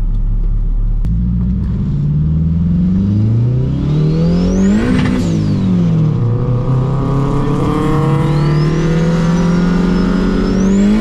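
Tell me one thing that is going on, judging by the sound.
A car engine revs up loudly from inside the car, dropping in pitch at each gear change and climbing again.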